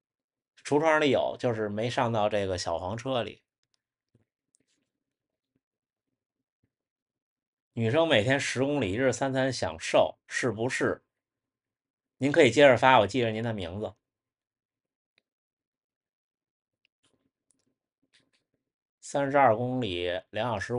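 A young man speaks calmly close to a microphone, in short bursts with pauses.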